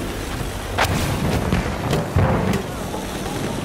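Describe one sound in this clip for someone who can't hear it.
Explosions bang loudly nearby.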